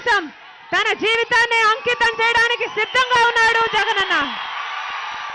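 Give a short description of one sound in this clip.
A young woman shouts a speech through loudspeakers with great energy.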